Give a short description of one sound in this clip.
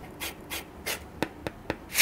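A knife slices through cardboard.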